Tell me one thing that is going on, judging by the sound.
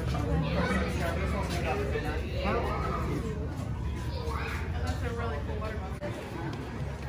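A crowd murmurs and chatters indoors.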